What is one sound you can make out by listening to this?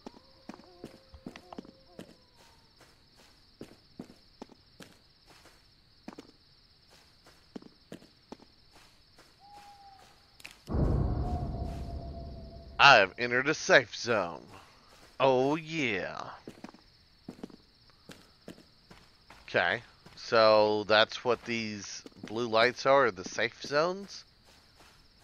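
Footsteps tread steadily over rough ground outdoors.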